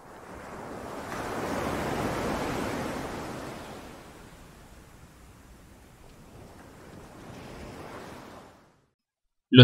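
Shallow waves wash softly over sand.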